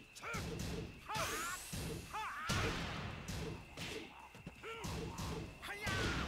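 Punches and kicks land with sharp, heavy smacks.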